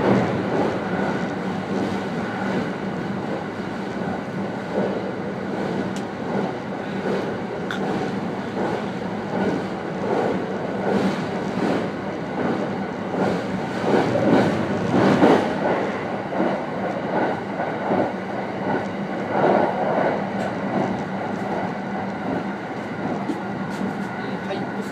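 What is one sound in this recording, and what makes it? Train wheels rumble and clatter on the rails.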